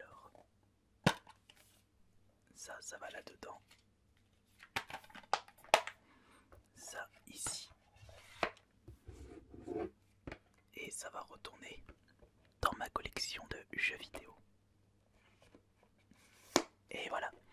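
Hard plastic cases tap and rattle as hands handle them.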